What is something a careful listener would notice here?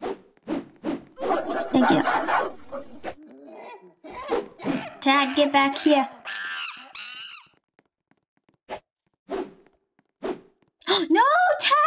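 A young girl talks excitedly close to a microphone.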